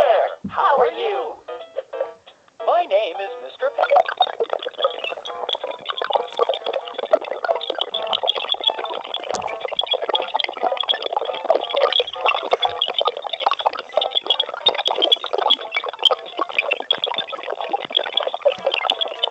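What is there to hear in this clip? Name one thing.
Cheerful music plays through a small, tinny speaker.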